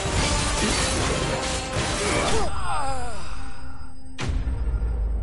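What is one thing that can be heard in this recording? Blades clash with sharp metallic hits.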